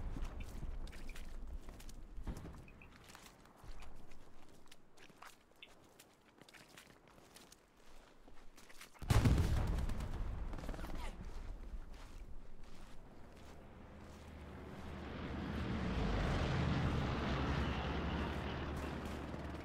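Dry grass rustles and crackles as someone crawls through it.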